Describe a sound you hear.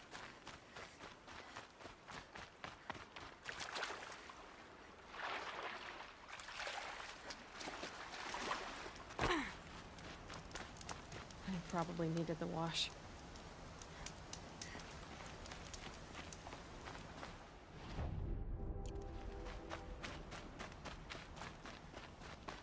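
Footsteps tread quickly on ground and grass.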